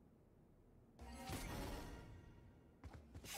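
A rushing whoosh swells and fades.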